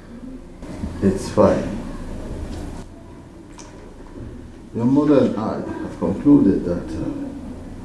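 An elderly man speaks slowly and gravely, close by.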